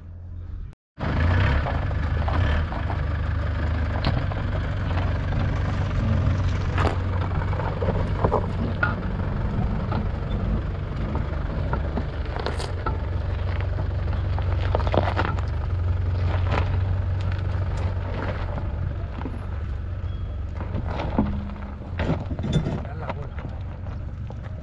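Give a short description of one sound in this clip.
Tyres crunch over dirt and stones.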